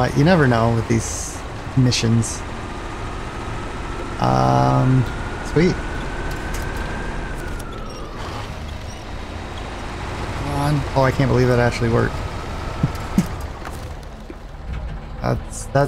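A heavy truck engine rumbles and labours.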